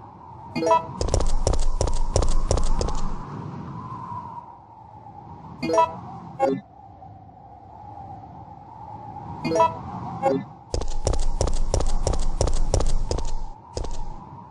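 Footsteps clatter quickly on a hard floor.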